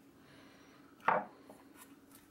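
A metal lid knocks against a can.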